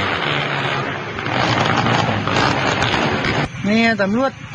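Motorcycle engines rev loudly nearby.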